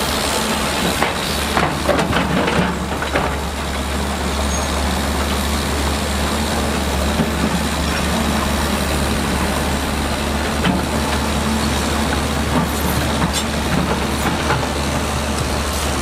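Rocks clatter and scrape as an excavator bucket digs.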